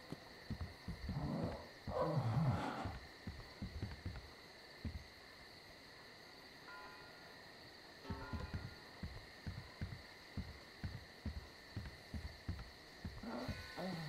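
Footsteps thud on creaking wooden boards.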